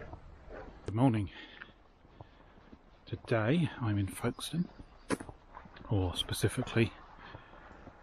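A man speaks calmly, close by, outdoors.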